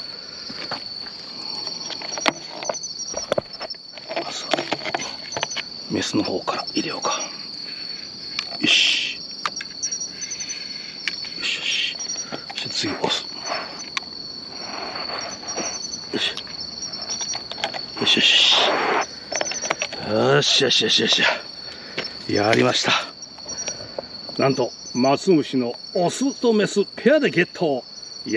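Insects chirp steadily nearby.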